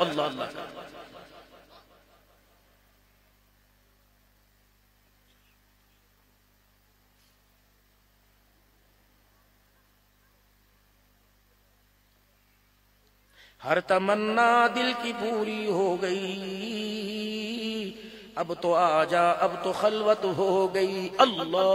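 An elderly man chants in a long, drawn-out voice through a microphone, with a silent pause in the middle.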